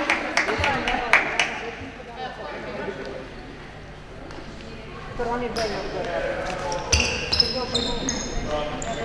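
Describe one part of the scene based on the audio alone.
Young players shout and call out to each other.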